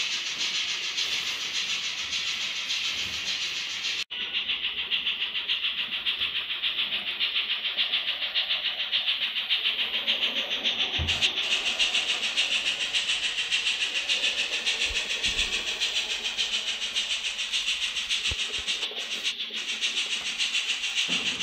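A small model train rattles steadily along the track with a quick, even beat.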